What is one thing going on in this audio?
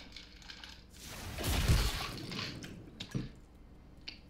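A monster's tentacle lashes and strikes with a heavy whoosh and thud.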